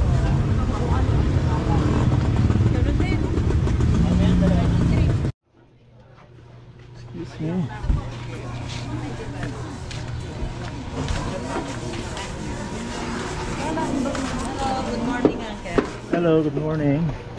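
Voices of many people chatter nearby in a busy crowd.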